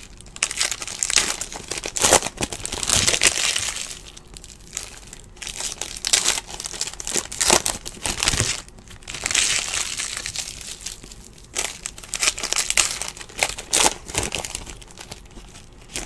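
Foil wrappers tear open with sharp rips.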